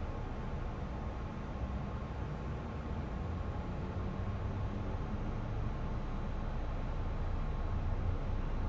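An electric train rumbles along the tracks as it approaches, growing slowly louder.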